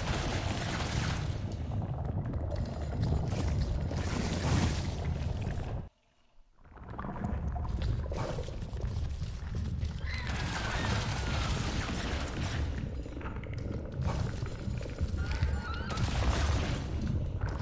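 Energy blasts crackle and burst in quick succession.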